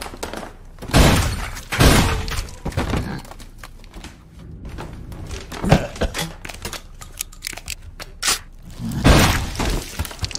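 A shotgun fires with loud, booming blasts.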